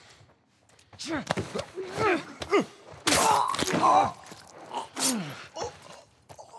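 A man grunts and groans with strain close by.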